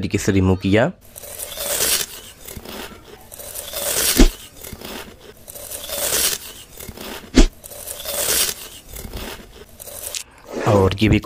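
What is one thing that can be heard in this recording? A blade scrapes repeatedly with soft rasping swishes.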